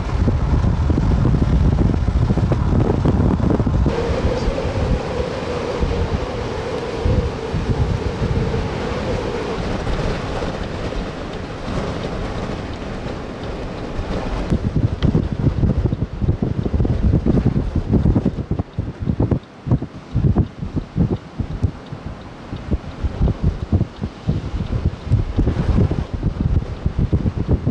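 Strong wind gusts roar and buffet the microphone outdoors.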